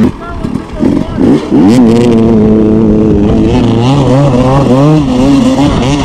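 A motorcycle engine idles and revs up and down close by.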